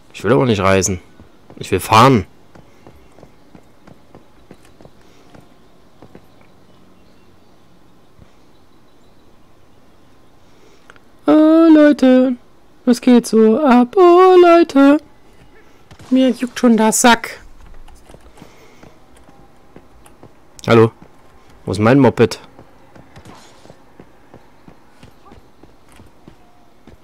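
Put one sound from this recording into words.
Footsteps run quickly on a gravel road.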